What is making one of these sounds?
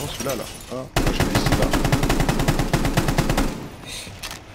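Rapid gunfire rattles in a loud burst.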